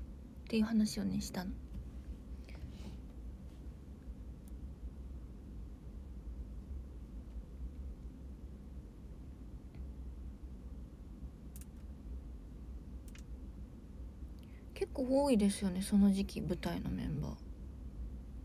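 A young woman speaks softly and close to a microphone.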